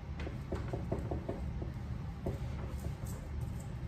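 A cloth rubs and wipes against wood.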